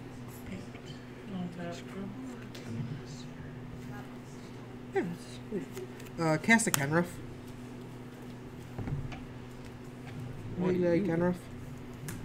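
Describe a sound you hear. Playing cards slide and tap softly on a table mat.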